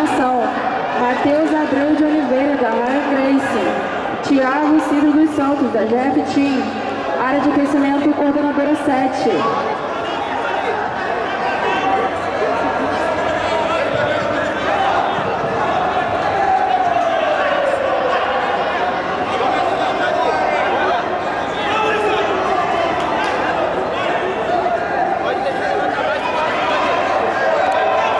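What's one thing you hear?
A crowd of men and women shouts and chatters in a large echoing hall.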